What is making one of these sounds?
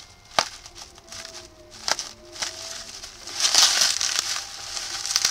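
Bubble wrap crinkles and rustles as hands handle a plastic bag.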